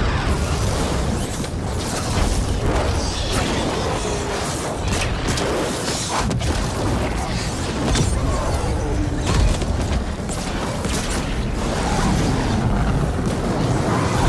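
Flames roar.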